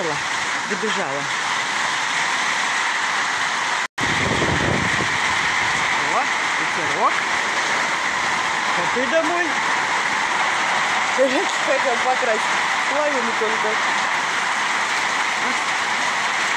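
Steady rain patters and splashes into water outdoors.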